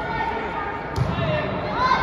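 A volleyball is struck with a sharp smack in an echoing hall.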